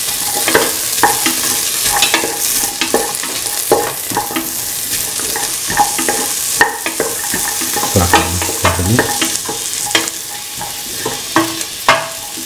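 A spoon clinks and knocks against a metal pot.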